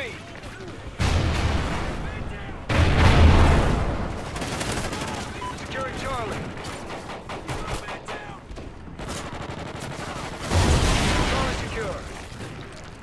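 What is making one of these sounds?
Automatic gunfire bursts loudly in short volleys.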